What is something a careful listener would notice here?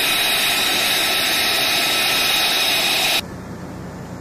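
A loud steady jet engine whines outdoors.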